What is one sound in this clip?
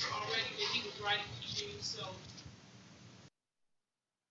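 A man preaches into a microphone, heard through a loudspeaker.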